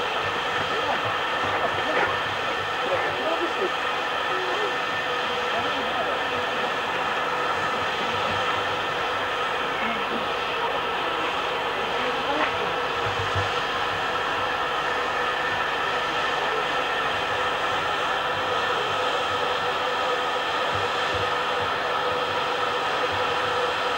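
A steam locomotive hisses and hums steadily close by.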